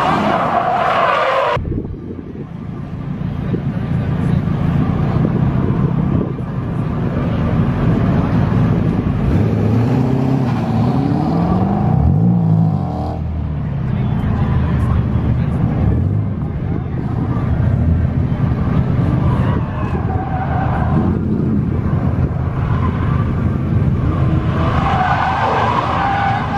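A car engine revs hard and roars as it drifts.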